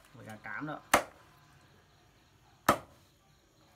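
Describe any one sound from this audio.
A cleaver chops sharply through bone onto a wooden board.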